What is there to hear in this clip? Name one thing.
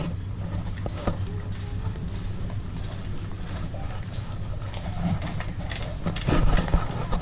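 A shopping cart rattles as it rolls over a hard floor.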